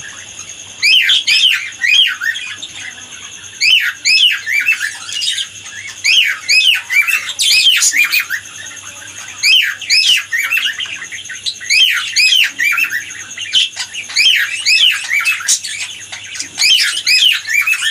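Cockatiels chirp and whistle in quick, repeated bursts.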